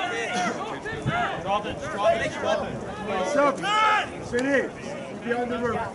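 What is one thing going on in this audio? Several men shout and call out loudly outdoors across an open field.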